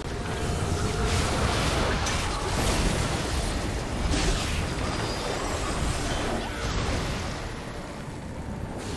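Magic spells burst and whoosh in a fight.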